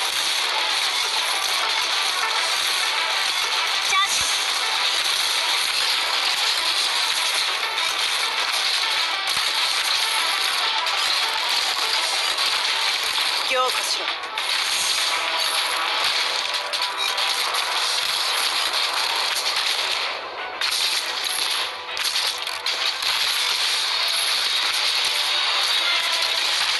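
Game sound effects of attacks and hits clatter continuously.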